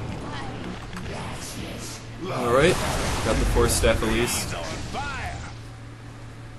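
Fiery blasts whoosh and crackle in a game battle.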